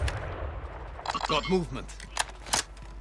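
A rifle bolt clicks and clacks as it is reloaded.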